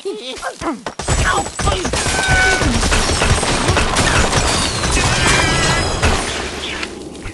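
Blocks clatter and crash as a tower collapses.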